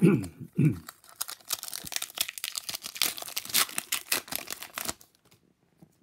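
A foil wrapper crinkles and rips open close by.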